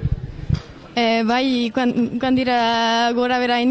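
A young woman speaks loudly into a microphone up close, drawing out her voice.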